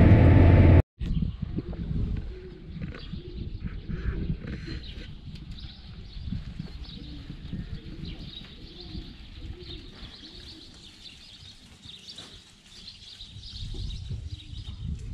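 Many sheep bleat.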